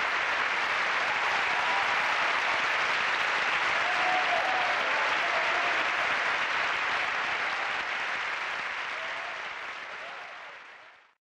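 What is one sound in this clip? A large audience applauds loudly in a big hall, then slowly fades.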